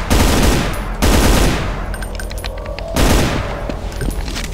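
A shotgun fires loud booming blasts.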